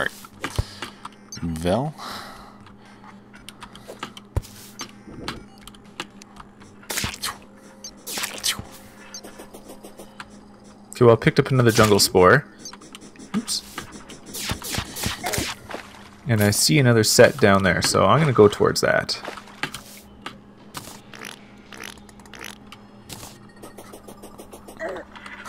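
Short electronic game sounds click and blip now and then.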